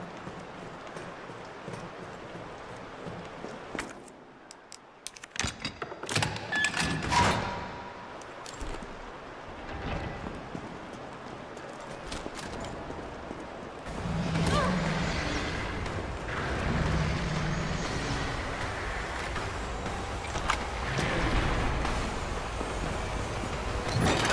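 Footsteps thud on a hard floor in an echoing tunnel.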